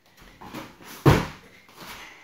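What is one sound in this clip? A child lands with a thud on a mat.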